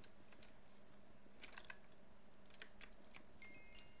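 Crops break with quick soft crunches.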